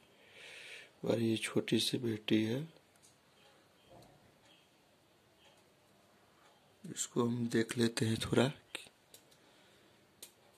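Small plastic parts click as they are fitted together.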